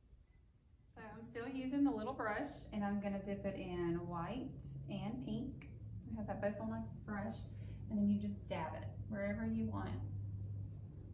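A young woman talks calmly and clearly close by.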